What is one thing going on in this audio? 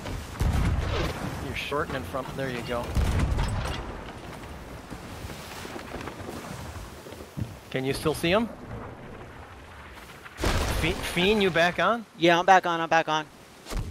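Waves surge and splash.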